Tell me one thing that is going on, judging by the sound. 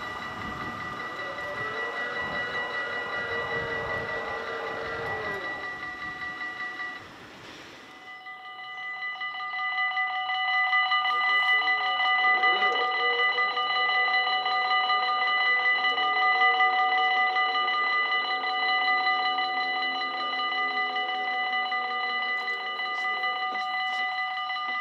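A crossing barrier motor whirs as the barrier swings down.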